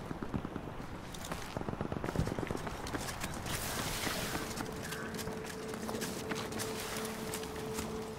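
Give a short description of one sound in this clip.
Footsteps crunch over gravel.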